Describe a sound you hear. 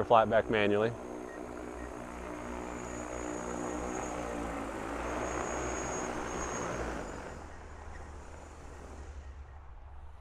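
A drone's rotors whir loudly as it hovers and lands, then wind down.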